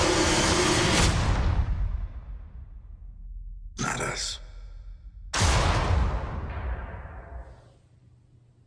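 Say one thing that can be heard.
A film trailer plays loudly with deep booming hits.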